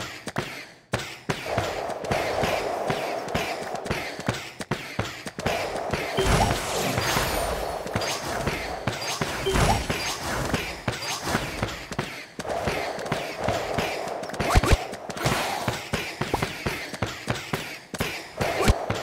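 Game effects pop and chime rapidly as pieces attack.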